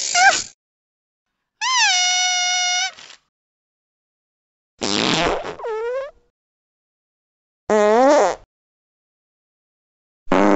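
A cartoon cat squeaks and chatters in a high, sped-up voice in short bursts.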